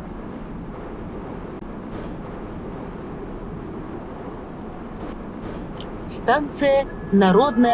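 A metro train rumbles along the track as it slows into a station.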